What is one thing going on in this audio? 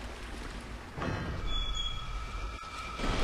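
A heavy gate grinds open.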